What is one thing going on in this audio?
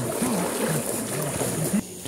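Legs splash while wading through a shallow river.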